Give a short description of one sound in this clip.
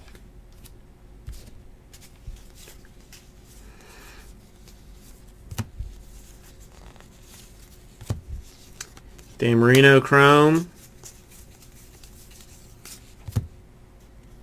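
Trading cards softly rustle and click as hands shuffle through them.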